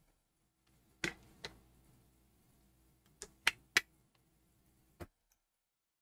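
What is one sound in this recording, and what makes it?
A plastic bottle clicks and knocks as it is handled close by.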